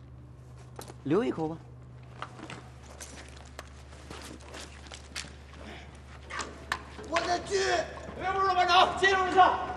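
Another man answers in a low voice.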